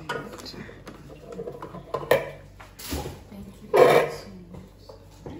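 Metal utensils clink and clatter against a bowl.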